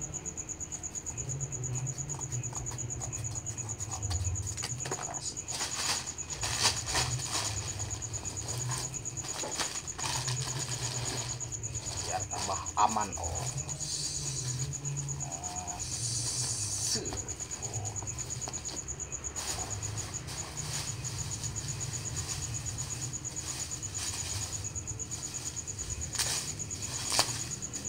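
Packing tape screeches as it is pulled off a roll.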